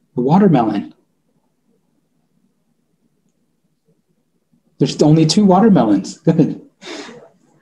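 A man speaks calmly through an online call microphone, in short bursts with pauses.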